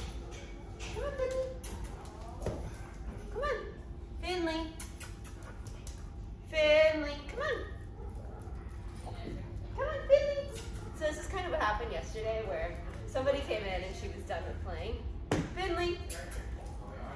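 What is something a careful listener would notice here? A young woman talks to a dog in an upbeat, coaxing voice nearby.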